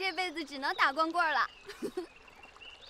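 A young woman speaks teasingly, close by.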